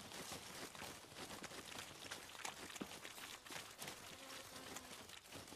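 Footsteps swish and rustle through tall grass.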